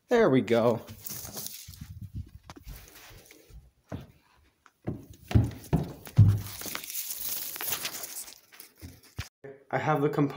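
Plant leaves rustle as they are handled.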